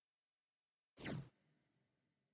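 A short, sharp interface whoosh plays once.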